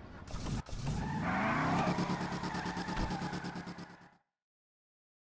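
Car tyres screech on pavement.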